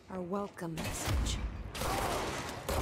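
Debris bursts and clatters in a loud blast.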